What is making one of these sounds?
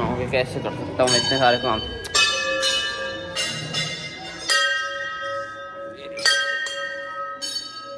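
A large temple bell clangs repeatedly and rings on.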